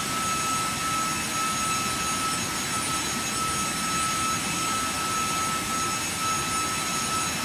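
Jet engines roar steadily with a high whine as an airliner climbs.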